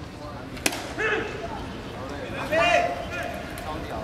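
Young men shout and call out from the sidelines outdoors.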